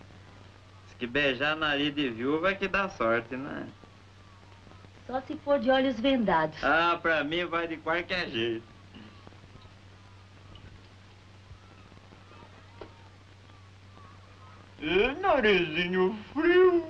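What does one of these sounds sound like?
A young woman talks with animation, heard through an old film soundtrack.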